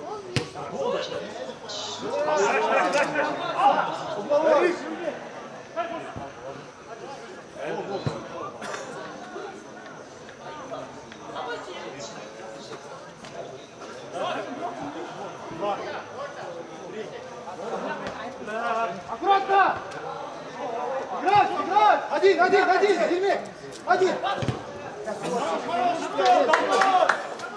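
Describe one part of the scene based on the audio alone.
Men shout and call out to each other during a football match outdoors.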